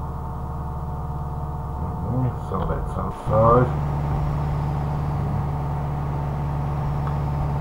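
A car engine hums steadily at cruising speed.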